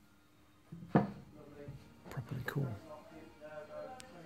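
A glass ornament is set down on a wooden table with a soft knock.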